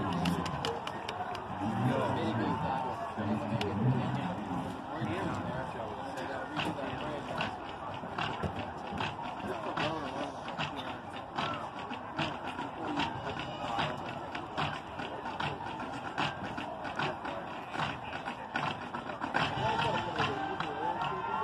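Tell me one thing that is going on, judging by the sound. A crowd chatters and cheers in a large open stadium.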